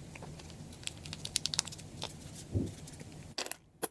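A ketchup bottle squirts and sputters.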